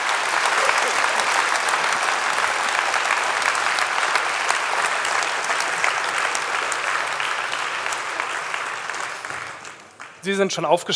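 An audience claps in a large hall and the applause slowly fades.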